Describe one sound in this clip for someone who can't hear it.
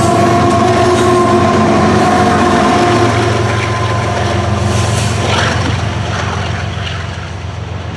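Diesel locomotives roar past with a deep hum.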